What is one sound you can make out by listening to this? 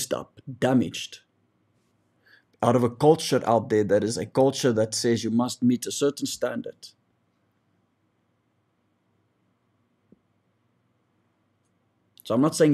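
A man speaks calmly and close to a microphone, pausing at times.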